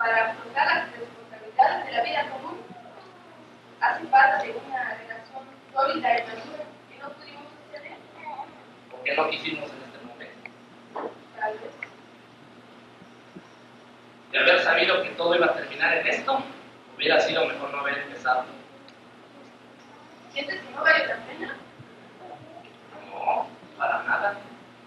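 A young man speaks with animation, heard from a distance in a hall.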